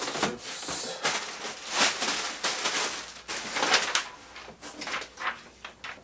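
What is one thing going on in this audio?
Plastic wrapping crinkles.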